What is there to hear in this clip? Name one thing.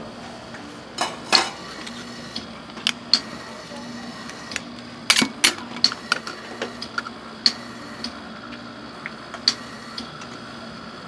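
Metal spatulas scrape and clack against a cold metal pan.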